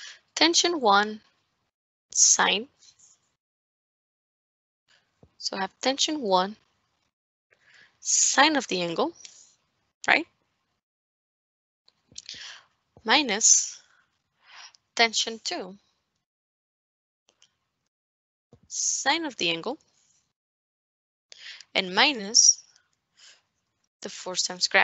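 A woman speaks calmly and slowly into a close microphone, pausing often.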